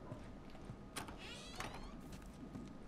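A wooden door creaks open.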